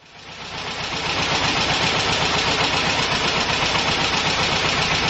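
An electric spark crackles and buzzes rapidly and steadily.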